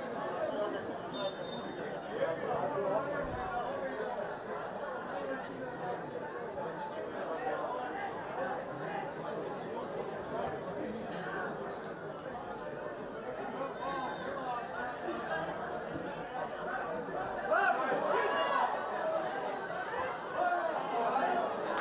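A sparse crowd murmurs and calls out in an open stadium.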